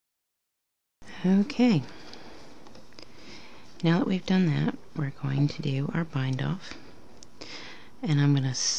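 A metal hook scrapes and clicks softly against the pegs of a knitting loom.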